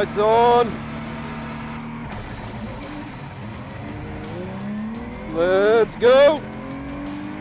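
A race car engine revs sharply in short, high-pitched bursts.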